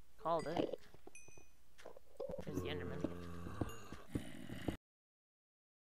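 A pickaxe taps and chips at stone in quick strokes.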